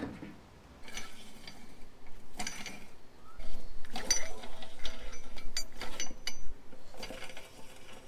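A lug wrench clicks and clanks as wheel nuts are tightened.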